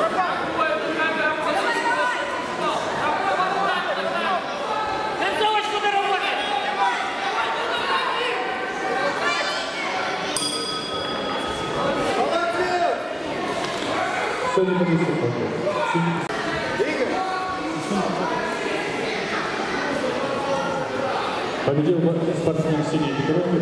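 A crowd of adults and children shouts and cheers in an echoing hall.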